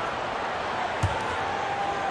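A basketball bounces once on a hard court.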